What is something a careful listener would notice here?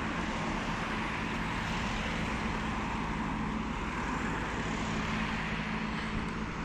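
Car traffic drives past steadily on a nearby street.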